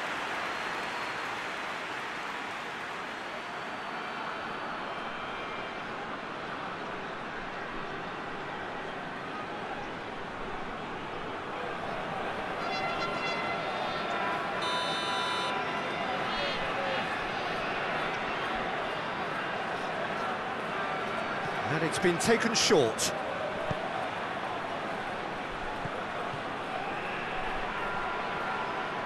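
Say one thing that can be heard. A stadium crowd roars and chants steadily throughout.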